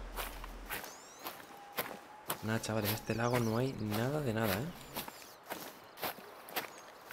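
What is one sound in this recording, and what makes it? Footsteps crunch through snowy brush.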